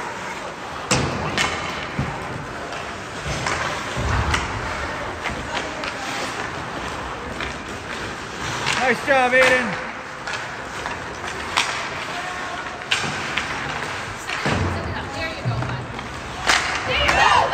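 A puck cracks off hockey sticks and thuds against the boards.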